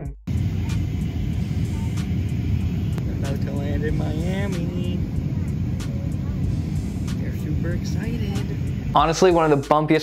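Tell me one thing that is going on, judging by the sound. A steady low roar of jet engines fills an aircraft cabin.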